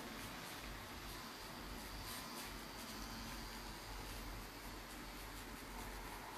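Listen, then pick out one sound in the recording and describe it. A tattoo machine buzzes steadily close by.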